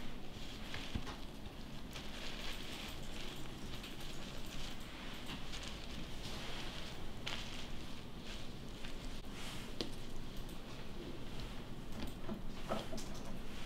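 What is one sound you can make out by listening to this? Food rolls are set down softly on lettuce leaves with a light rustle.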